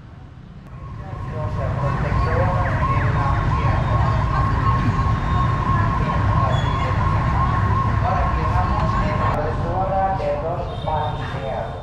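A crowd of adults chatters and murmurs nearby.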